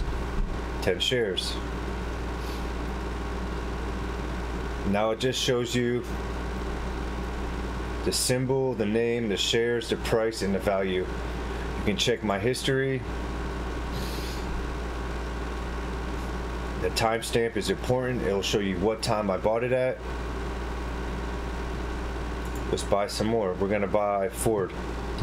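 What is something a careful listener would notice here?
A man speaks calmly and close to a headset microphone, in short bursts with pauses.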